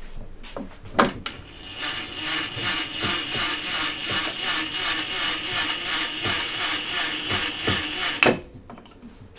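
A machine table slides along with a fast, even ticking.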